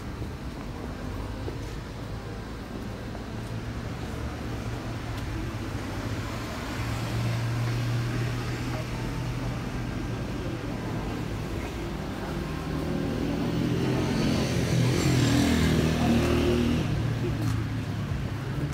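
Traffic rumbles steadily on a nearby street.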